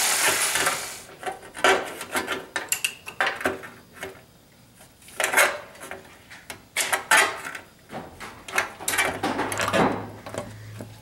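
Sheet metal clanks and rattles sharply.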